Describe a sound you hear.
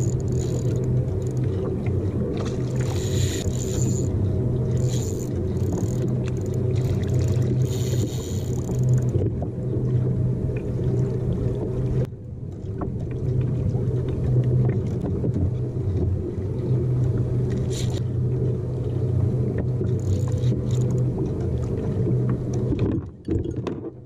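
Wind rumbles steadily outdoors over open water.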